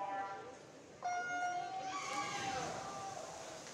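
Swimmers dive into the water with a splash.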